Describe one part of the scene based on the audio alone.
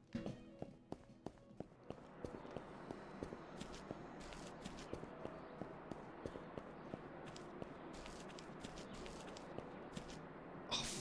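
Footsteps tap steadily on hard ground.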